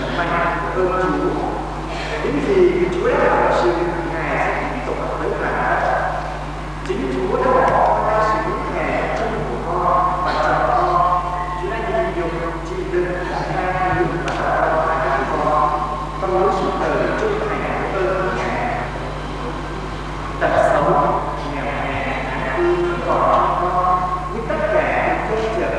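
A man speaks steadily through a microphone.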